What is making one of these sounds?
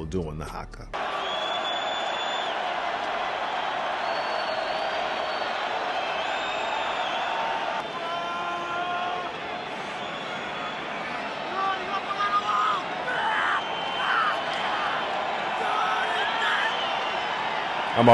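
A large stadium crowd roars and murmurs.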